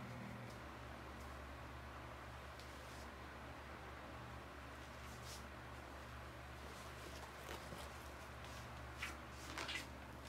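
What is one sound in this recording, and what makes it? Fabric of a bag rustles as it is worn.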